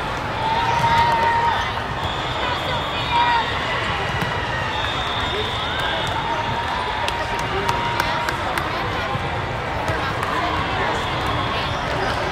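A large crowd chatters in a big echoing hall.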